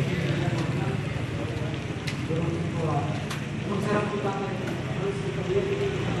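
A crowd of men and women chatters in a room with an echo.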